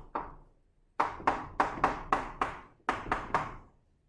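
Chalk taps and scratches rapidly on a blackboard.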